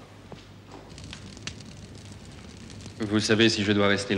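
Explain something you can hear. A wood fire crackles in a fireplace.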